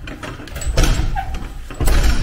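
A metal door handle clunks as it is pushed down.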